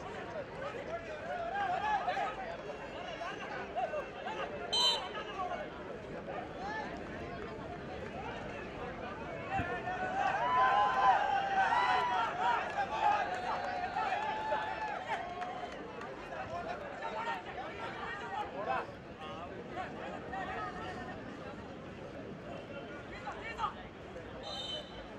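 A large crowd of spectators chatters and shouts outdoors.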